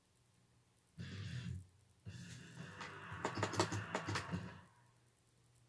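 Game sounds play from a television loudspeaker.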